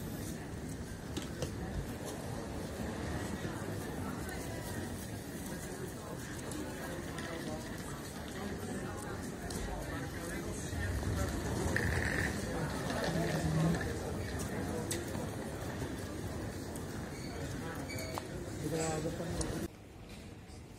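Footsteps echo on a hard floor in a large hall.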